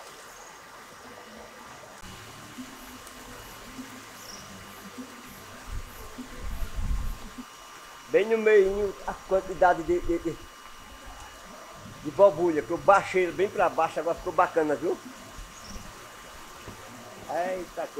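Water splashes softly as a swimmer pushes a floating tub.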